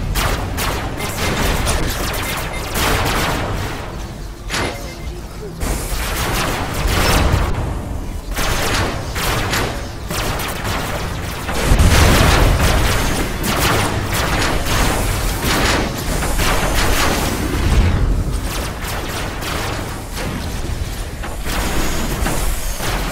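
A heavy machine engine hums and roars.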